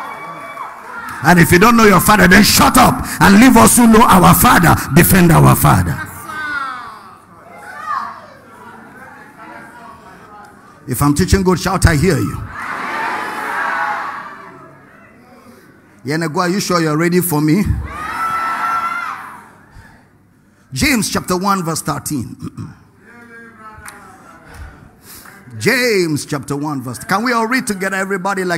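A man preaches with passion into a microphone in a large echoing hall.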